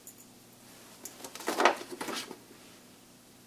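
Paper rustles as it is unfolded.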